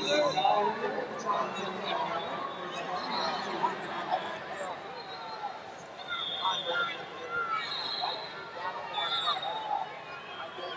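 A large crowd chatters and calls out throughout a big echoing hall.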